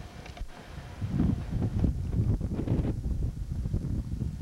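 A brush sweeps and scrapes snow off a vehicle.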